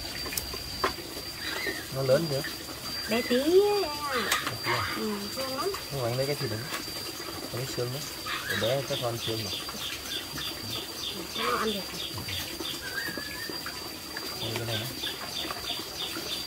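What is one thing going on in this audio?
Chopsticks clink against metal bowls.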